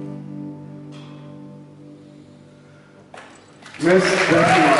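A last chord on acoustic guitars and cello rings out and slowly fades.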